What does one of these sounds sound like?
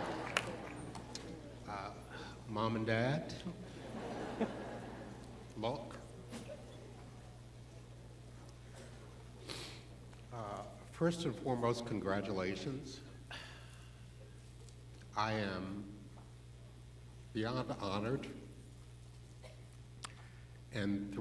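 An elderly man speaks slowly into a microphone in a large hall, with long pauses.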